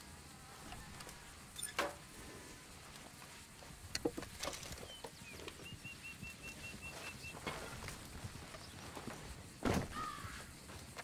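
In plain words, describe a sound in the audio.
Small objects clink and rattle as they are picked up.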